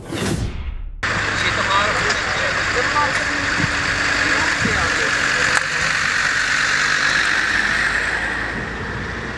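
A fire engine's motor idles steadily nearby.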